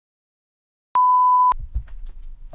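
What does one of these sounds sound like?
A test tone beeps steadily.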